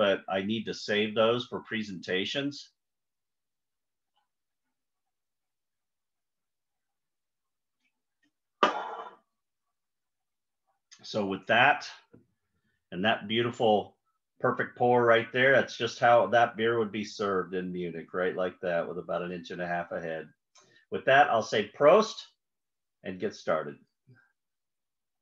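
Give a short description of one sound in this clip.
An older man speaks calmly and with animation over an online call.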